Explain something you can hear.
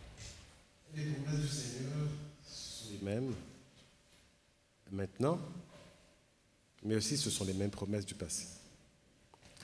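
A man speaks with feeling into a microphone in a large echoing hall.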